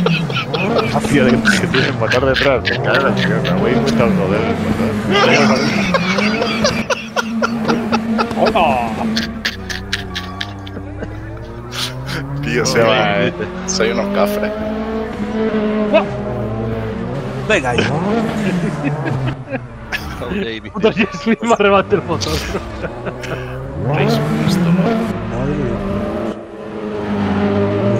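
A car engine revs hard and whines, rising and falling as the car drifts.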